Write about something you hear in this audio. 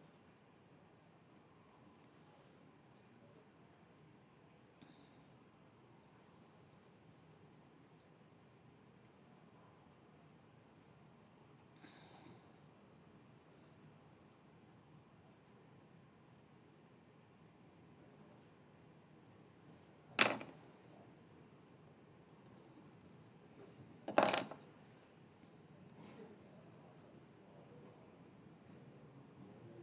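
A pen scratches faintly on paper.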